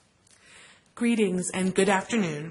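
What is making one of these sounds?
A woman speaks clearly and with animation into a microphone.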